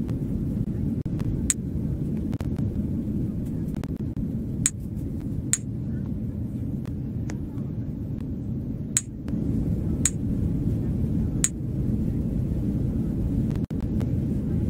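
An airplane cabin hums with a steady low rumble.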